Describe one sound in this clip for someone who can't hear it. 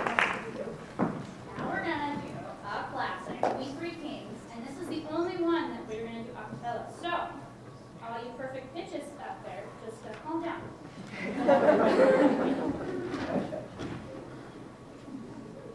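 A woman speaks calmly into a microphone in a large hall.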